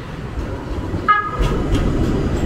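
A tram bell rings once.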